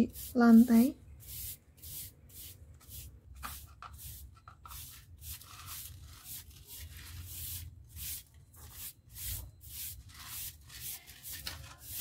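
A stiff brush scrubs briskly over a hard floor.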